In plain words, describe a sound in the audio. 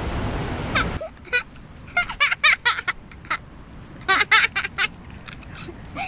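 A young boy laughs loudly up close.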